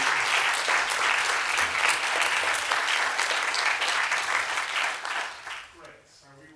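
An audience applauds loudly in a large echoing hall, then the clapping dies away.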